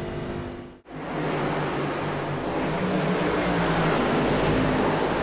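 Several race car engines roar together as cars race past.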